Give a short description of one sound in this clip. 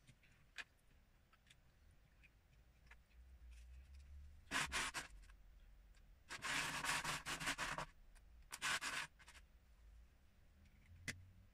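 Plastic bricks click together as a man assembles a small toy.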